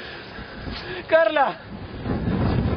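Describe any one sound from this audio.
A young man speaks in a distressed, crying voice close by.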